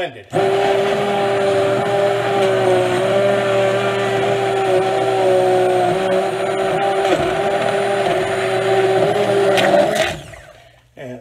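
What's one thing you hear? An immersion blender whirs loudly as it purees soup.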